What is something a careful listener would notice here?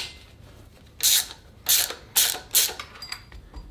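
A hand tool clicks against metal parts.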